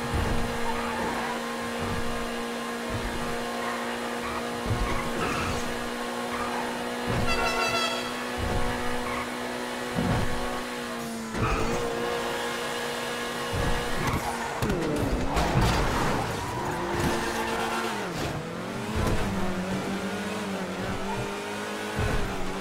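A sports car engine hums steadily, changing pitch as the car speeds up and slows down.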